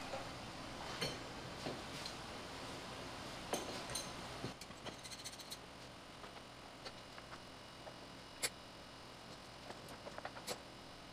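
Wooden pieces knock and clatter as they are set down on a wooden board.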